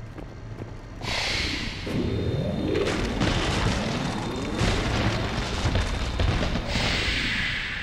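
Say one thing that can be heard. A loud blast rumbles as debris crashes and scatters.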